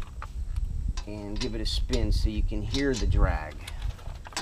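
A man talks close by, calmly explaining.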